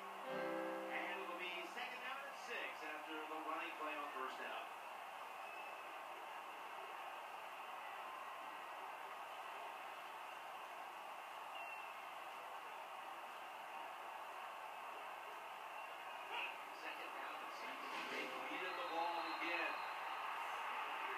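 A crowd roars steadily through a television loudspeaker.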